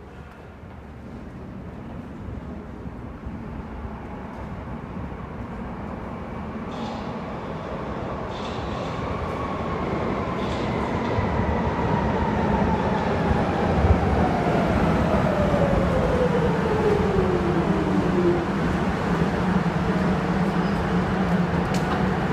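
A train rumbles closer and grows steadily louder as it pulls in.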